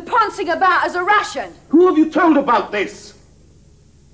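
A young woman shouts angrily close by.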